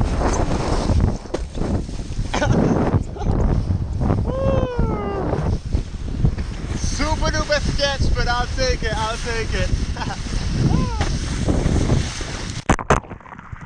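Water sprays and splashes loudly around a board skimming the sea.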